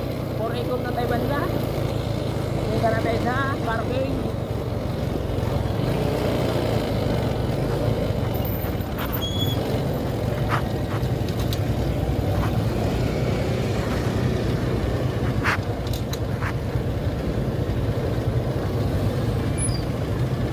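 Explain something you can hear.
A scooter engine hums steadily as it rides along a road.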